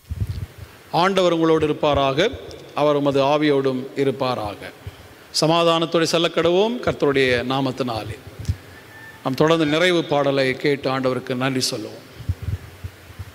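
A middle-aged man speaks calmly into a microphone, in an echoing hall.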